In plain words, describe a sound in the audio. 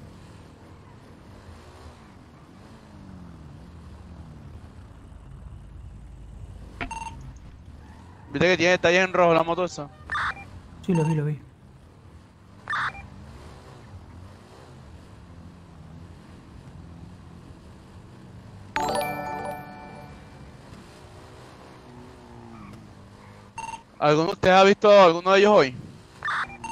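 A motorbike engine hums and revs as it rides.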